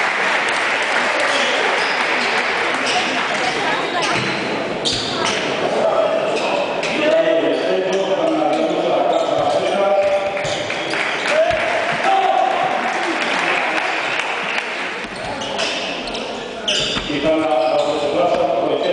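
A crowd of men talk and call out in a large echoing hall.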